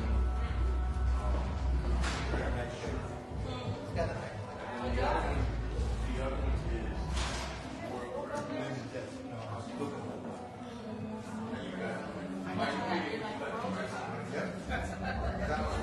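Young girls chat with each other close by.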